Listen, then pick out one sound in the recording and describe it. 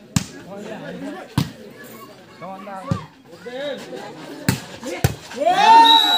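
A volleyball is struck by hands with sharp slaps.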